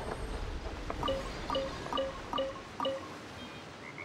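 Bright chiming notes ring out one after another.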